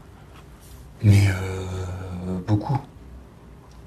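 A middle-aged man speaks briefly and firmly, close to a microphone.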